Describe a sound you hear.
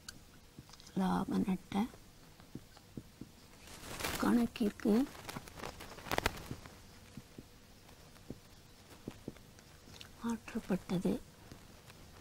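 A woman speaks calmly nearby, in short phrases.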